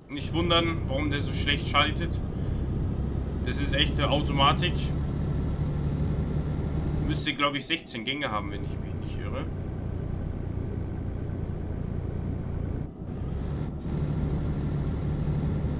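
A truck engine hums steadily at a low pitch as the truck drives along.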